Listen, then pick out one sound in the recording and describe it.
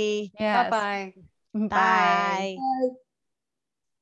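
A woman speaks cheerfully over an online call.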